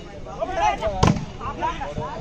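A volleyball is struck with a sharp slap.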